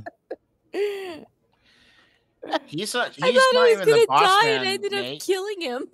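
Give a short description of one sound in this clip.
A woman laughs through an online call.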